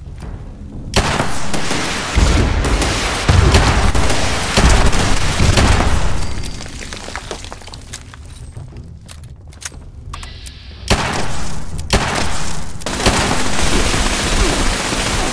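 A rifle fires rapid bursts of shots that echo loudly.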